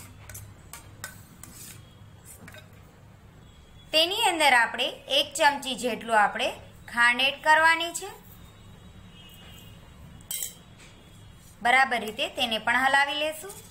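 A metal spoon scrapes and clinks against a metal bowl while stirring batter.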